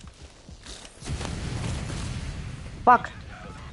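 A burst of flame roars loudly.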